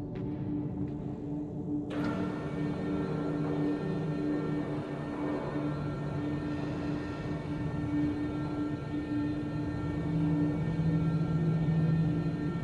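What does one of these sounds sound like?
A hovering machine hums steadily with a low drone.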